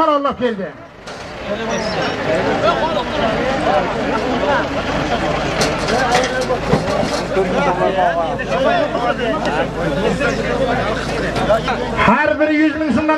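A large crowd of men talks and shouts outdoors.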